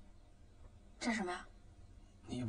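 A young woman asks a short question in surprise.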